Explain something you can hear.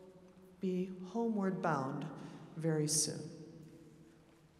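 An orchestra plays loud closing chords in a large echoing hall.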